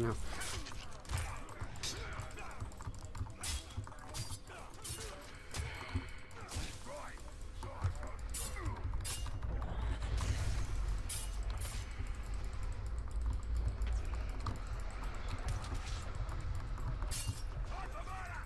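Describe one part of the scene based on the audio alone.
Blades clash and slash in a close fight.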